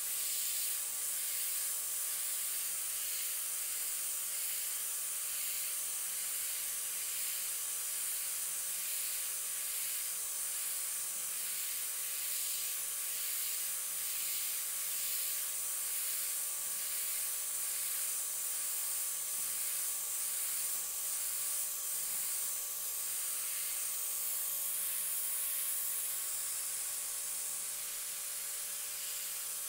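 An airbrush hisses steadily as it sprays in short bursts.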